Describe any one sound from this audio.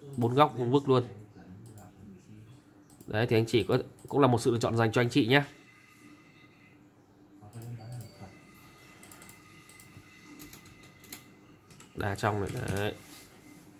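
Fingers handle a small glass pendant with faint clicks.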